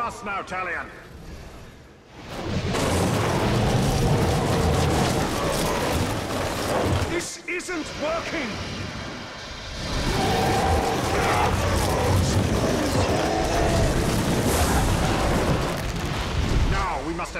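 Fiery explosions boom nearby.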